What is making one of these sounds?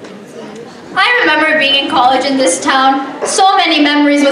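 A young woman sings loudly through loudspeakers.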